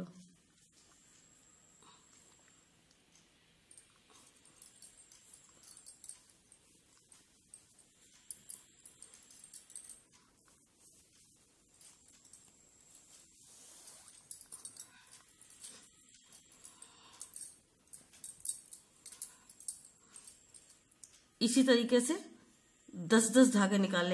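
Cloth rustles softly as it is handled and folded.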